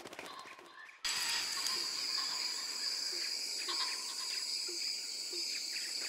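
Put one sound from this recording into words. A bird chirps.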